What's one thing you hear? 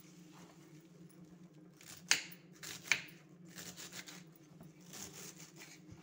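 A knife chops through crisp stalks on a wooden board with sharp taps.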